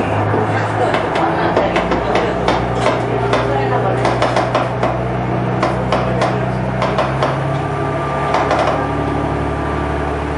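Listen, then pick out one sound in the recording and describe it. A train engine hums steadily from inside the cab.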